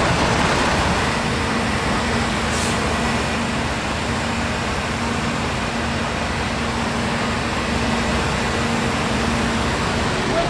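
A fire engine idles with a steady low hum.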